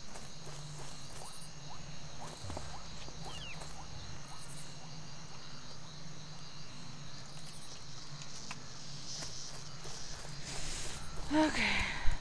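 Footsteps tread on a stone path.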